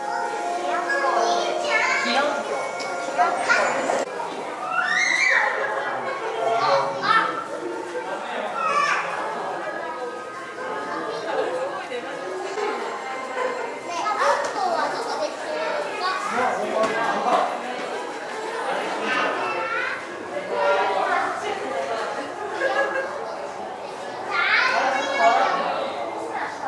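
Visitors chatter nearby.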